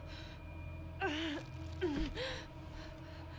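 A young woman groans in pain.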